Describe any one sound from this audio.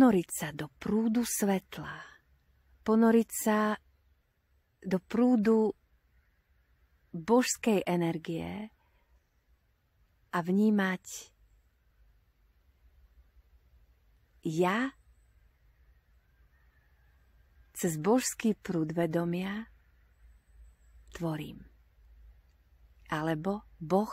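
A woman speaks calmly and close by, in short phrases with pauses.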